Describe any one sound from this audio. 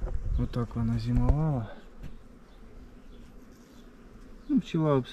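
Bees buzz in a low, steady hum close by.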